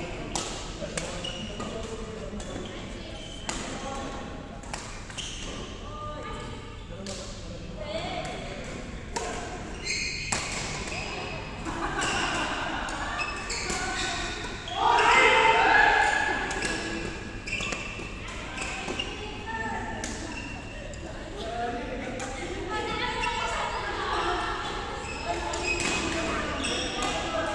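Young women shout and chatter in the distance.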